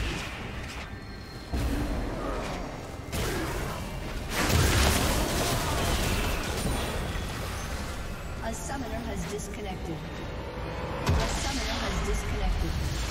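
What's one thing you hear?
Magical spell effects whoosh and burst in quick succession.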